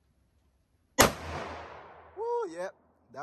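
A rifle shot cracks loudly and echoes outdoors.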